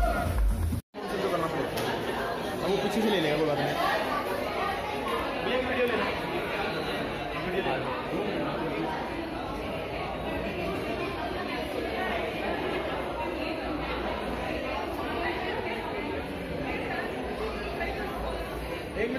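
A crowd chatters in a busy echoing hall.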